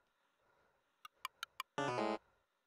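Short electronic clicks sound in quick succession.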